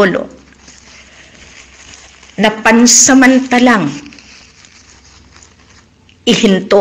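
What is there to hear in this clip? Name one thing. A middle-aged woman speaks with animation close to a microphone.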